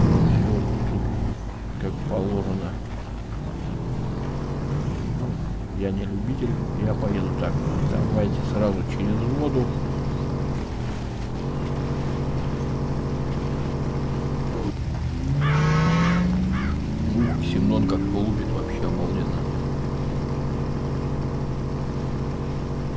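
A car engine drones steadily and revs up at times.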